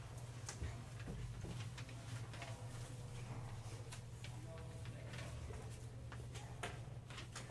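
Papers rustle on a table nearby.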